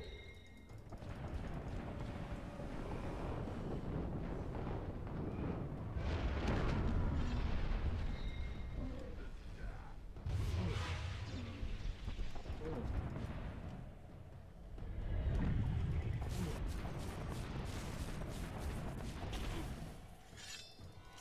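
Magic lightning crackles and booms in loud bursts.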